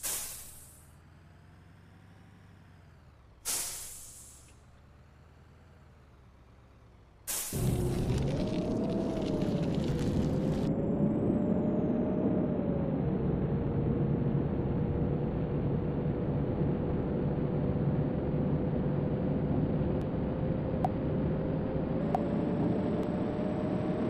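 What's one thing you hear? A bus engine drones steadily, growing louder partway through.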